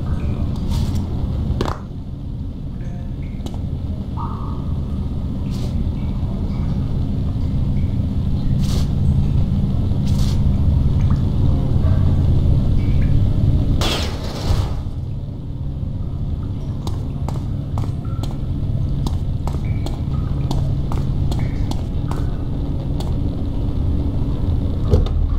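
Footsteps tap on a hard floor in a large echoing space.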